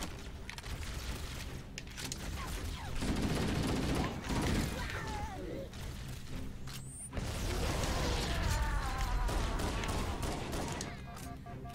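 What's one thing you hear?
Energy weapons whine and crackle.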